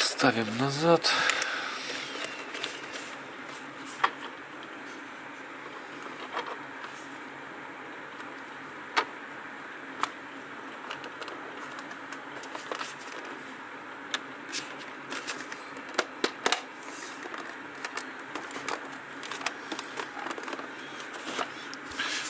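Hands handle a plastic case, with light clicks and knocks.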